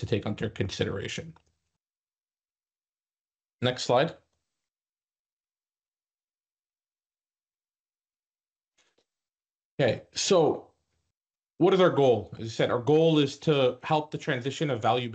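A man speaks calmly over an online call, with short pauses.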